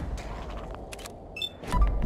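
A laser pistol fires with a sharp zap.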